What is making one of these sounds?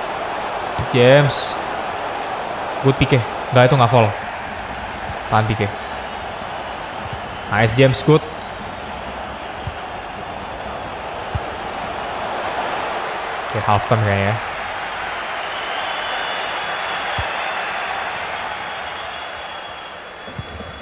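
A stadium crowd murmurs steadily in the background.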